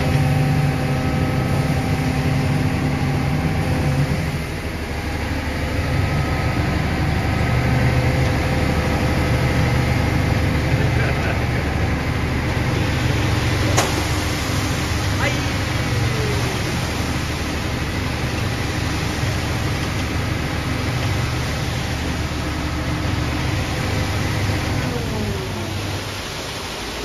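A concrete mixer drum rumbles steadily.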